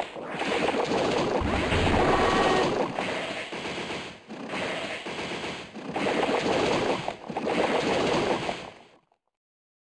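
Crackling, buzzing attack effects burst loudly in a game.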